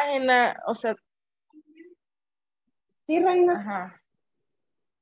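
A young woman speaks with animation over an online call.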